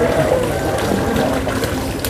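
A fish splashes in the water nearby.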